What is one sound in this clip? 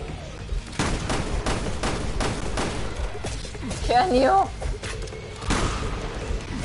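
Guns fire in rapid shots.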